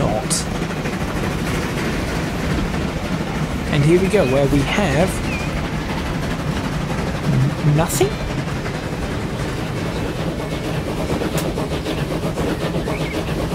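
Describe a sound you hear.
Wheels rumble over the rails.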